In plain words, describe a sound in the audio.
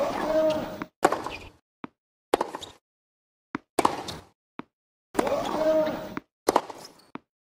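A tennis ball is struck back and forth with sharp racket hits.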